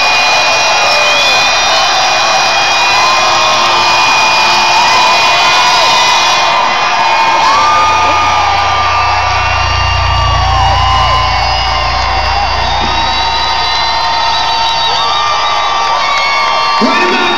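A live rock band plays loudly through big loudspeakers in a large echoing arena.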